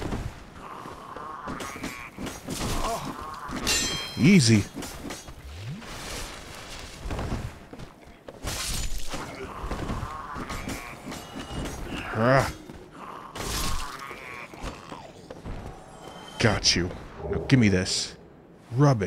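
A sword slashes and strikes flesh with heavy thuds.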